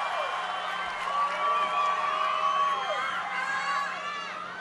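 Fans in a crowd scream and whistle shrilly.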